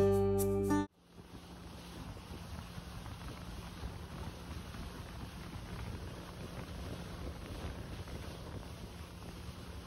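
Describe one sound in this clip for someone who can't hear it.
Wind rushes past outdoors.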